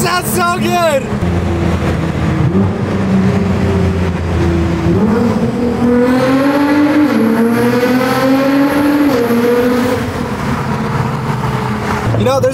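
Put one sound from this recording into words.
A car engine roars and revs, rising and falling in pitch.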